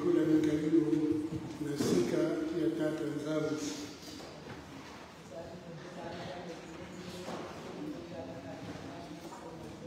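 A congregation of women sings together in a large echoing hall.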